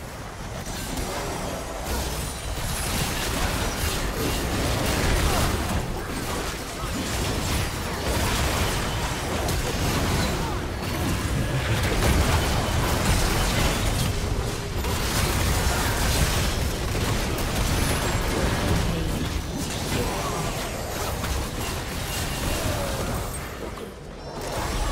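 Magic blasts and crackles in a fast, busy fight.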